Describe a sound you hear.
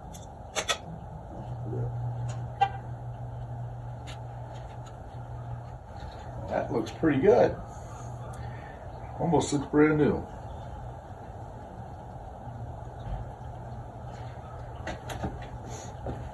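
Small metal parts clink and tap as a man works on a boat.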